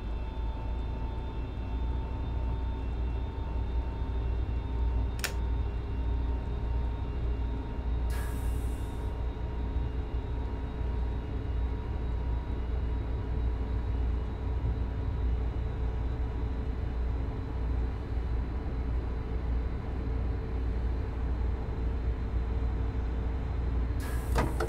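A train's electric motors hum steadily as it runs along the track.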